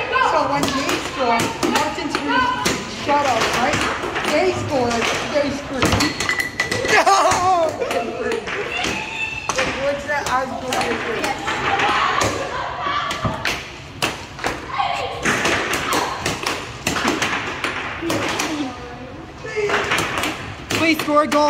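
A plastic puck clacks against strikers and the rails of an air hockey table.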